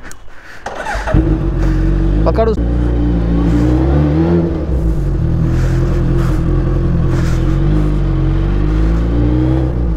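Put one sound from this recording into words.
A motorcycle engine starts and rumbles loudly as the bike rolls off.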